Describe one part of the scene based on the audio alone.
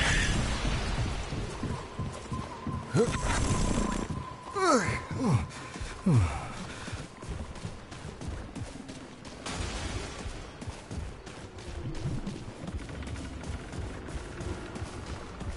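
Footsteps crunch and rustle through undergrowth.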